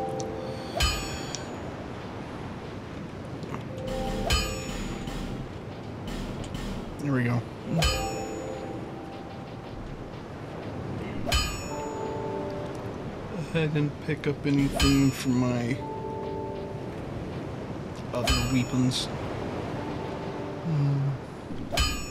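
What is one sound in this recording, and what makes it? A man talks casually through a microphone.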